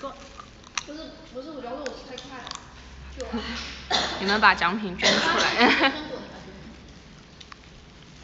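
A young woman bites and chews food.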